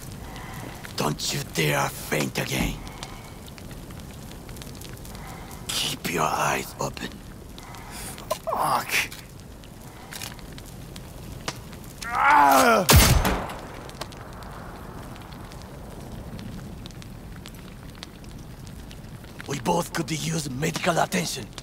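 A man speaks in a low, strained voice close by.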